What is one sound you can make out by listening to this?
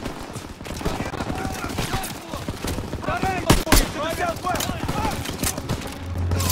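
Rifles fire in loud, sharp shots with echoes.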